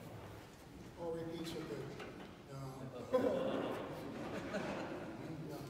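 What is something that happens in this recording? A brass band of tubas and euphoniums plays a slow tune in an echoing hall.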